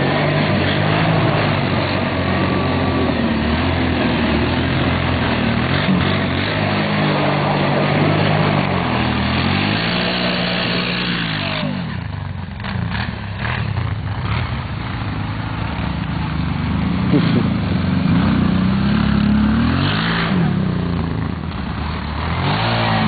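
An all-terrain vehicle engine revs and putters up and down nearby.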